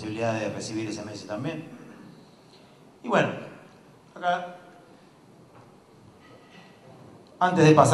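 A man speaks into a microphone in a large room, heard through loudspeakers.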